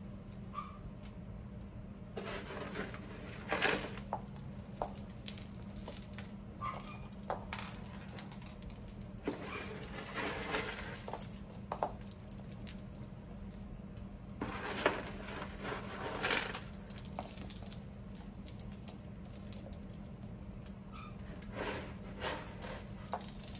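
Small bits of debris patter and rustle as they fall onto a mat.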